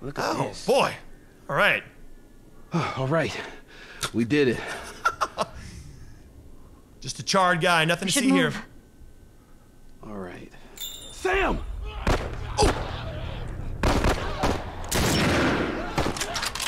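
A young man talks and laughs with animation into a close microphone.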